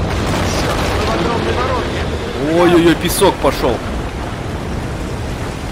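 A low rumble of crumbling buildings rolls on steadily.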